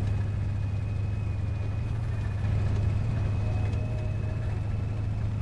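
Tank tracks clatter and grind over dirt.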